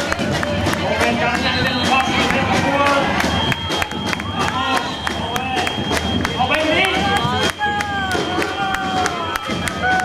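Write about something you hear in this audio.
A crowd of men and women cheers and calls out nearby.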